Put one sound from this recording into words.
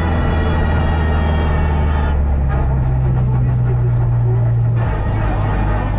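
A man reads out pace notes calmly.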